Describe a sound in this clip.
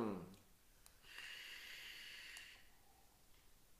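An electronic cigarette sizzles as a man inhales.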